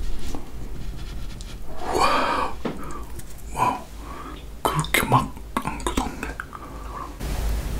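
A young man speaks close to a microphone with animation.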